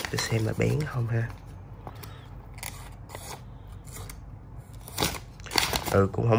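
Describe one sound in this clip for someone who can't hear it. A knife blade scrapes and cuts through paper.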